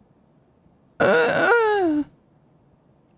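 A man speaks briefly and loudly into a microphone, his voice falling in pitch.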